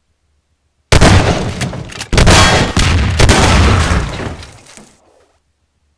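A shotgun fires loud, booming blasts that ring out and fade.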